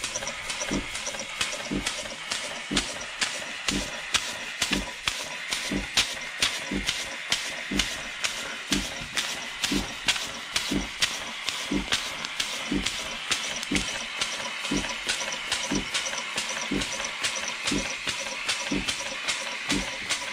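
A small steam engine runs with a steady, rhythmic thumping beat.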